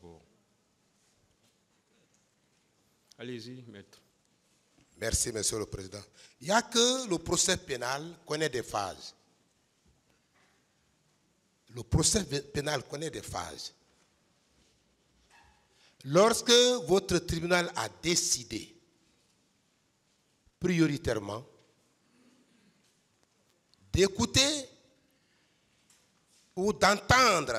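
A man speaks slowly and firmly into a microphone, with long pauses.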